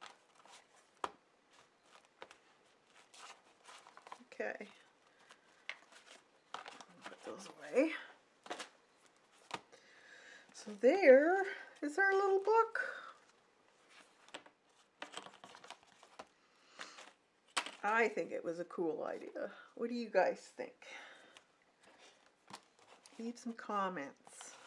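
Stiff paper rustles and taps as hands handle it.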